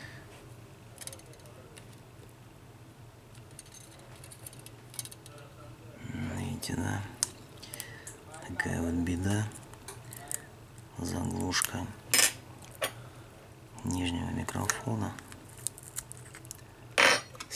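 Small metal tools click and tap against a phone's frame.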